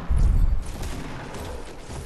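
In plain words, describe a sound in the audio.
A pickaxe strikes a tree with dull thuds.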